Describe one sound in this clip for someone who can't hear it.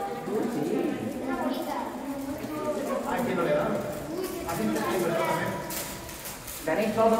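A man speaks to a group.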